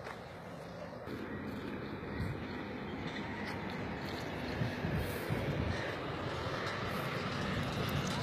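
Water splashes softly.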